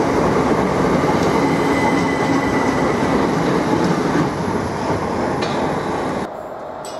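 A train rushes past close by with a loud rumbling roar.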